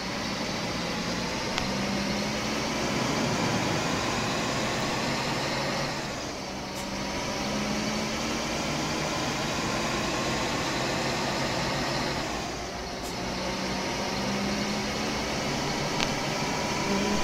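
Tyres roll with a steady rushing noise on the road.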